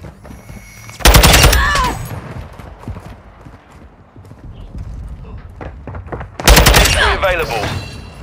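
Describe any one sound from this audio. A loud rifle shot booms and rings out.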